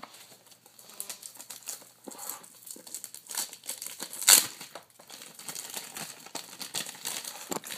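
A plastic bag rustles and crinkles as hands handle it.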